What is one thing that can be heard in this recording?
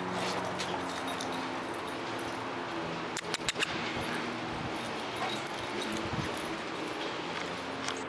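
Dogs run and patter across the ground outdoors.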